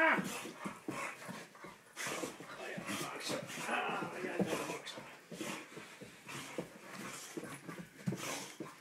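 A dog's paws scrabble and skid on the carpet.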